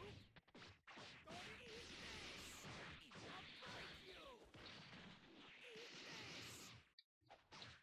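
Punches and kicks land with quick, sharp smacks.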